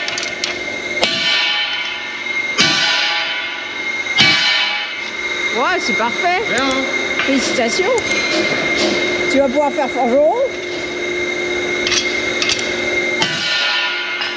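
A hammer strikes metal with a loud ringing clang.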